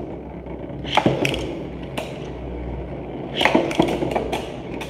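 Spinning tops clash with sharp clacks.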